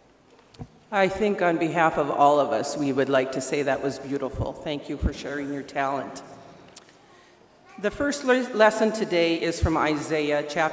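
A middle-aged woman speaks clearly into a microphone.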